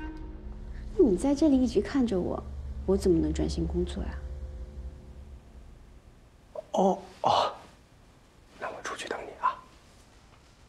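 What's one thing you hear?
A young woman speaks gently nearby.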